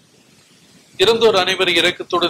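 An elderly man speaks loudly and solemnly through a microphone.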